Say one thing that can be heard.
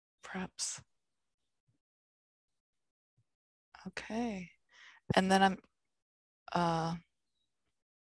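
A woman speaks in short bursts over an online call.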